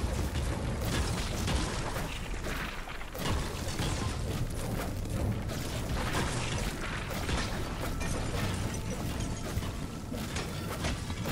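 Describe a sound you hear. A pickaxe repeatedly strikes stone with sharp knocks.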